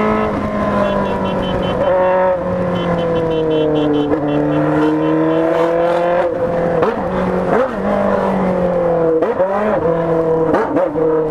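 A motorcycle engine hums steadily close by, its pitch rising and falling as the rider speeds up and slows down.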